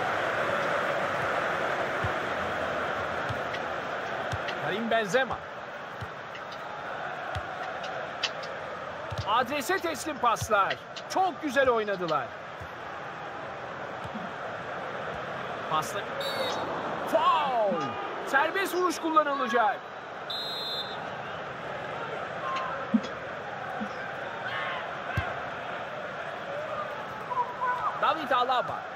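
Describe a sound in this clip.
A football is kicked with dull thumps.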